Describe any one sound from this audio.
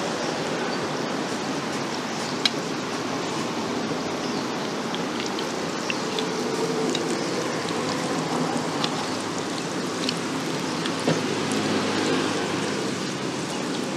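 Hot oil sizzles and bubbles steadily around frying dough.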